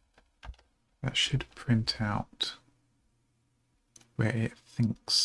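A man speaks calmly and close into a microphone, in short bursts.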